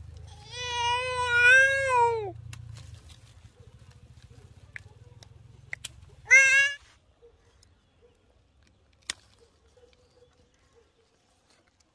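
Pruning shears snip sharply at twigs.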